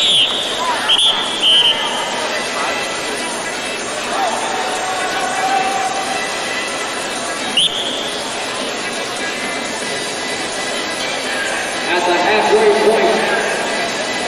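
A large crowd murmurs and cheers throughout a big echoing arena.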